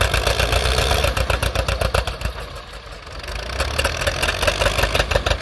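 A tractor engine labours and pops rapidly under heavy load.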